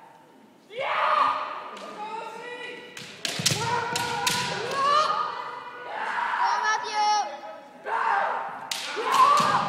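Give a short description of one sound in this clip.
Kendo fighters shout loud, drawn-out kiai cries in a large echoing hall.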